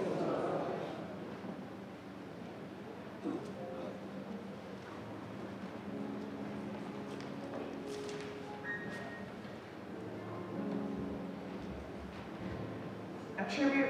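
A young woman reads aloud calmly into a microphone in a large echoing room.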